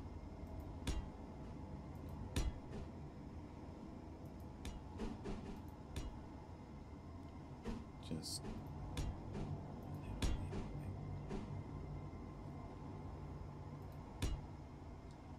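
Sharp mechanical clicks sound now and then as blocks snap into place.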